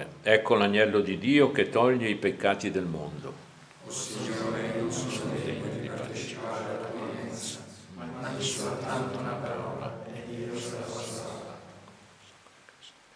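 An elderly man chants slowly and solemnly into a microphone in an echoing room.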